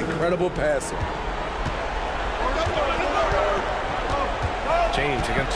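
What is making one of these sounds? A basketball bounces with dull thumps on the floor.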